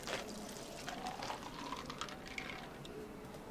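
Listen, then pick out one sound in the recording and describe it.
Ice cubes clink as a bottle is shaken.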